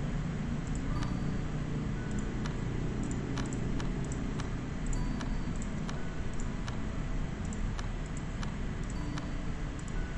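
Soft game interface clicks tick now and then.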